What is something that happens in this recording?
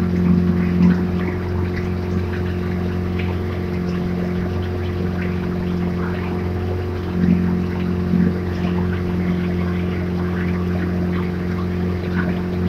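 Oars splash rhythmically in calm water.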